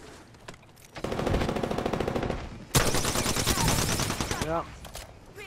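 Rapid automatic gunfire bursts out close by.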